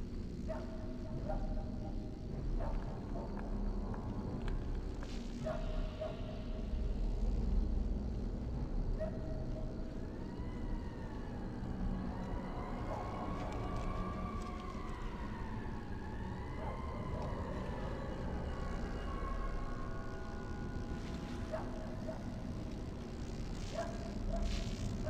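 Footsteps tread on stone pavement.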